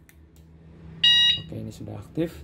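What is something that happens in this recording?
An alarm unit gives a short electronic beep.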